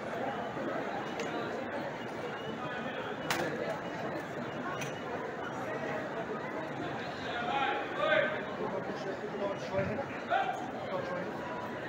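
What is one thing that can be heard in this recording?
A large crowd murmurs and chatters steadily outdoors.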